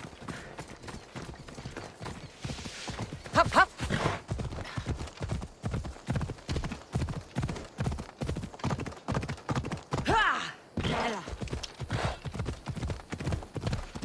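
A horse's hooves thud in a steady trot on the ground.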